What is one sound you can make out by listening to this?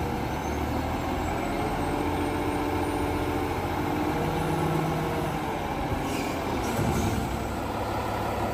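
Hydraulics whine as a garbage truck's front loader arms lower.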